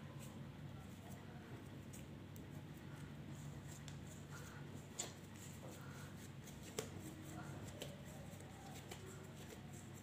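Hands softly pat and squeeze a ball of dough.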